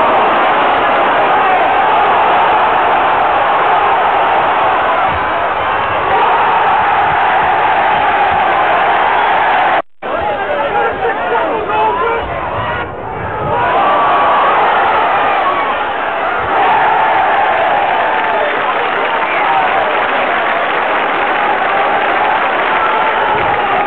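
A large crowd cheers and roars loudly in an open stadium.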